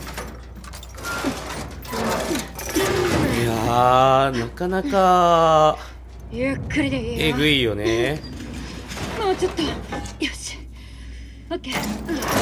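A metal shutter rattles as it is pulled up on a chain.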